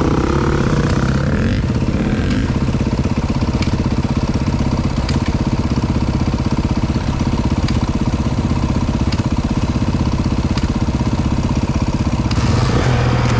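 A dirt bike engine idles close by with a steady rumble.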